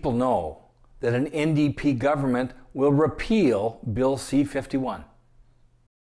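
A middle-aged man speaks calmly and with animation, close to a microphone.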